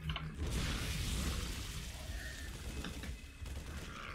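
Game weapons fire in quick crackling bursts.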